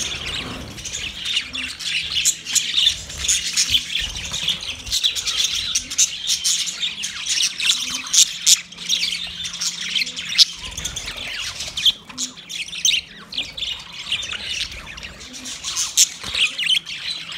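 Budgerigar wings flutter as birds fly about.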